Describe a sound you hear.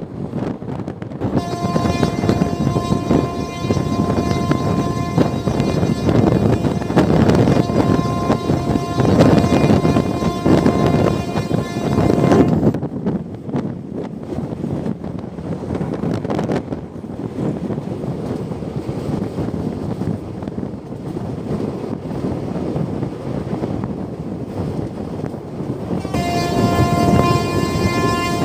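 A train rumbles and clatters steadily along the track close by.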